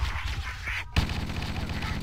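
A rifle fires a short burst.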